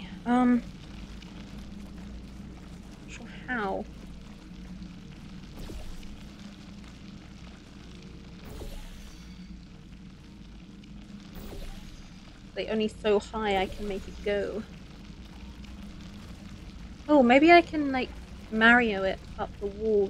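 A young woman talks animatedly into a close microphone, in short bursts.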